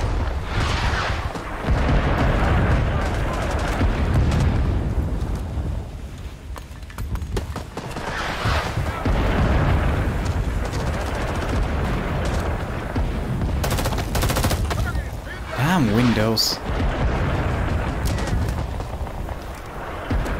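Gunfire crackles in the distance.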